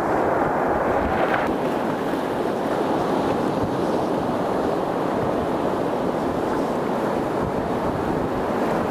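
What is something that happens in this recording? Waves crash and wash over rocks close by.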